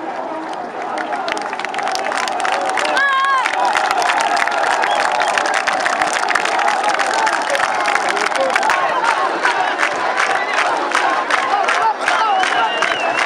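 A large crowd claps.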